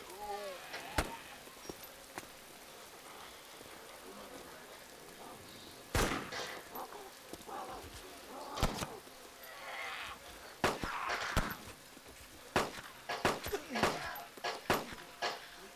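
Gunshots fire one after another, sharp and loud.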